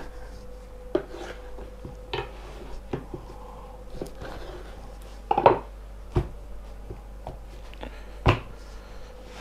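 A knife knocks against a wooden chopping board.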